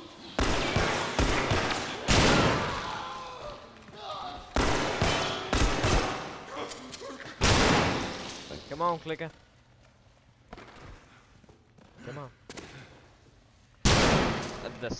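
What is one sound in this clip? Loud gunshots fire one after another and echo.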